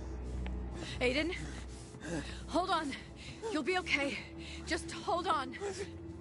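A young woman shouts urgently and anxiously.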